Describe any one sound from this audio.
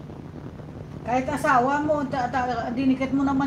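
A middle-aged woman speaks animatedly close to a microphone.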